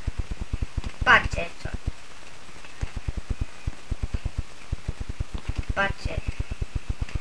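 A boy exclaims briefly close to a microphone.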